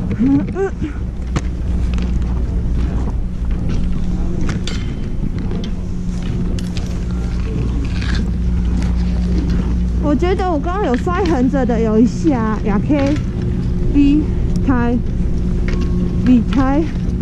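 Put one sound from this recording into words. Ski boots crunch and scrape over packed snow.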